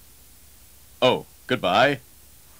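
A man speaks in a goofy, cartoonish voice close by.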